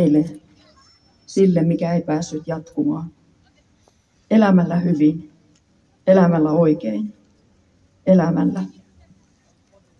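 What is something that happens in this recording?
A woman speaks into a microphone over a loudspeaker outdoors, in short loud phrases with pauses.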